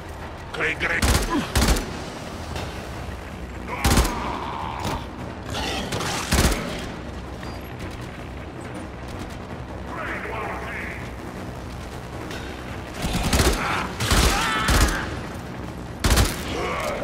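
Gunshots fire in short loud bursts.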